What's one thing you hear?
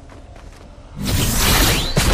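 A zipline whirs loudly as a figure slides along it.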